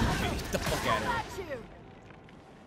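A burst of flame whooshes.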